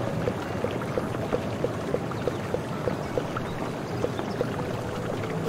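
Short electronic menu blips tick in a quick, even rhythm.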